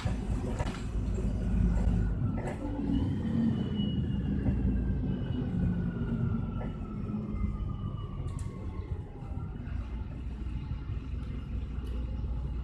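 A bus engine rumbles steadily from inside.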